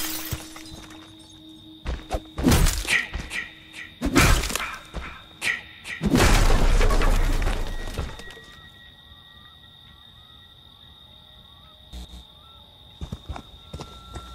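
Heavy footsteps tread over leaves and dirt.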